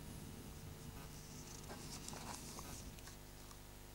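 Paper rustles as sheets are turned.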